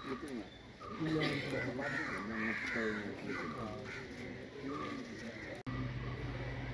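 Several men talk quietly at a distance outdoors.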